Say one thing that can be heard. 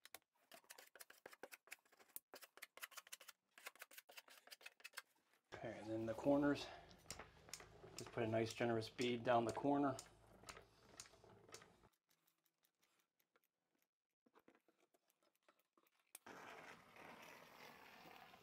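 A caulking gun clicks as its trigger is squeezed.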